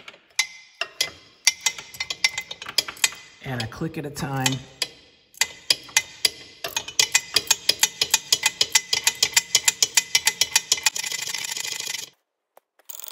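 A ratchet wrench clicks rapidly.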